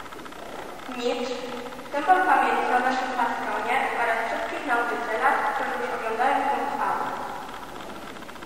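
A young woman speaks calmly into a microphone, echoing through a large hall.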